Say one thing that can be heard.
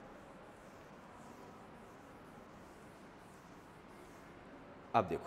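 A duster rubs softly across a chalkboard.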